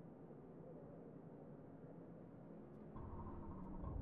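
A race car engine idles with a low hum.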